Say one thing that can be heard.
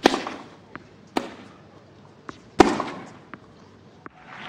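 A tennis ball is struck with a racket and bounces on the court.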